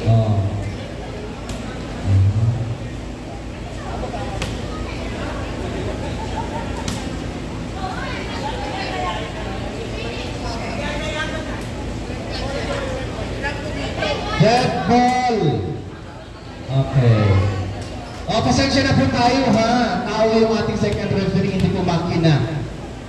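Young women shout and cheer loudly in a large echoing hall.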